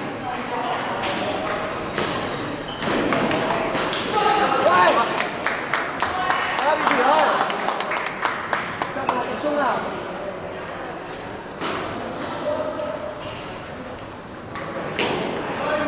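A table tennis ball clicks back and forth across a table and paddles.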